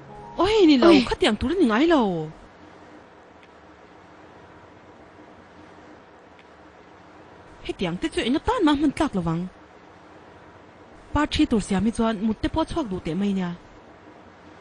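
Women speak calmly, close by.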